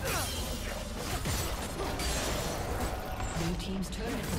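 A game tower crumbles with a heavy crash.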